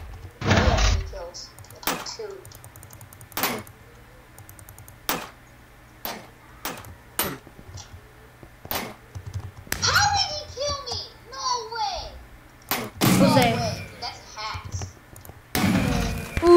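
Sharp, short knocks of blows landing come now and then.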